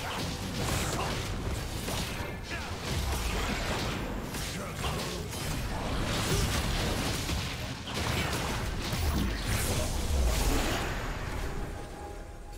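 Magic blasts and sword hits clash and crackle in a fast game battle.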